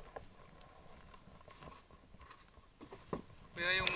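Water splashes and sloshes against the side of a small boat.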